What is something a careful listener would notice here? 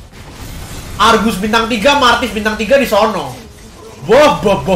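A young man talks excitedly into a microphone, close by.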